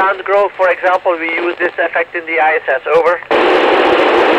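A man speaks over a crackly radio link.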